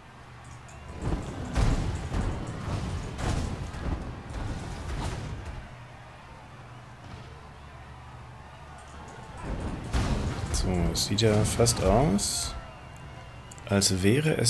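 Fiery explosions roar and crackle in bursts.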